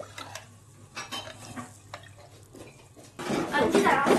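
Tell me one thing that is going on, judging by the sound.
A spatula scrapes and stirs food in a sizzling pan.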